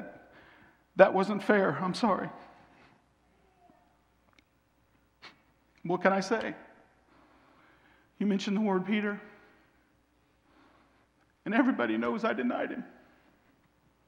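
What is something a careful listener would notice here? A man speaks dramatically in bursts, with long pauses.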